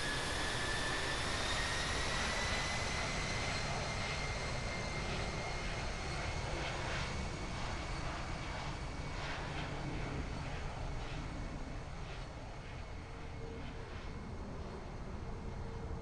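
Jet engines roar and whine steadily.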